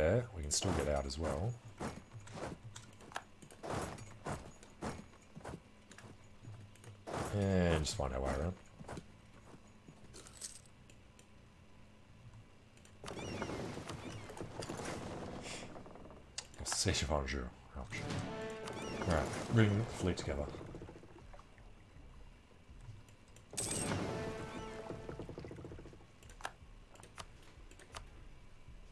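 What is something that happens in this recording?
Short interface clicks tick repeatedly.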